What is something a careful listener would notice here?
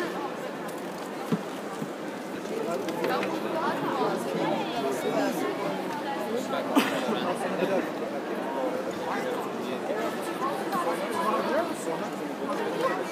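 A crowd of spectators murmurs and chatters throughout a large echoing hall.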